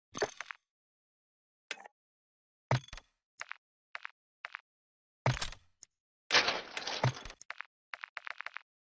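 Short electronic menu clicks and swooshes sound again and again.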